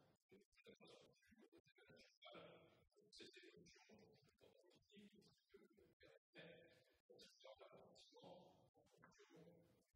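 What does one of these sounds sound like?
A middle-aged man reads out calmly into a microphone.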